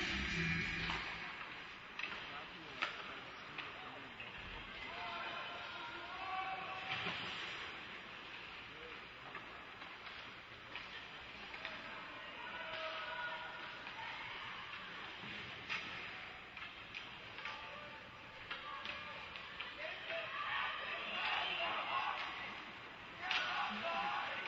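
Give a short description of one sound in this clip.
Hockey sticks and pucks clack and knock.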